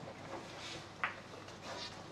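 A cue tip strikes a billiard ball.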